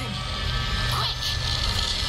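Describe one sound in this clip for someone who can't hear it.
Flames crackle.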